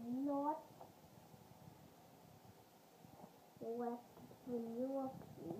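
A young child reads aloud slowly, close by.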